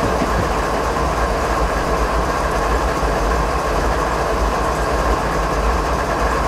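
Train wheels roll and clatter along the rails.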